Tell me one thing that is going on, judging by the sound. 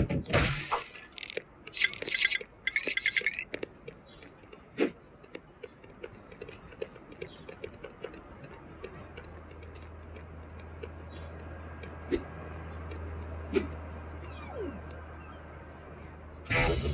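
Game sound effects play from a handheld game console's small speakers.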